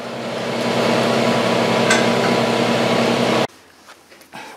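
An angle grinder whines loudly as it grinds metal.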